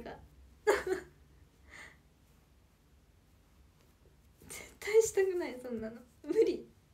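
A young woman speaks cheerfully and close to a microphone.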